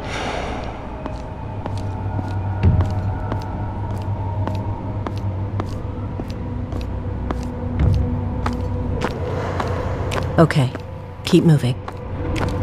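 Quick light footsteps tap along steadily.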